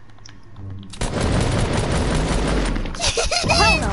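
Rapid gunfire rings out.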